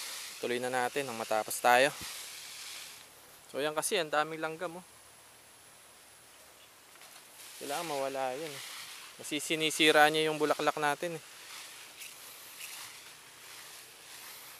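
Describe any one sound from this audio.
A pump sprayer hisses out a fine mist.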